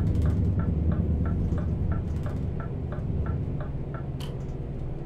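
A turn signal ticks.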